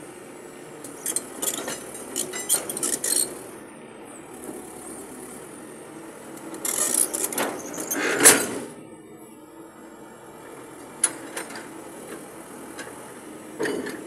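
Concrete pipes clank and scrape as an excavator pushes them onto a trailer.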